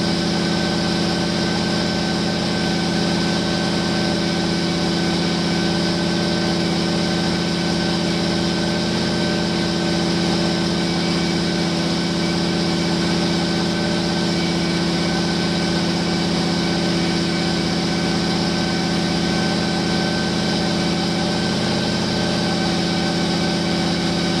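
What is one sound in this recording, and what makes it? A large engine idles with a steady, deep rumble close by.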